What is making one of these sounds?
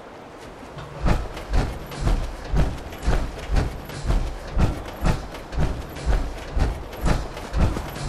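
Heavy metal footsteps thud steadily on the ground.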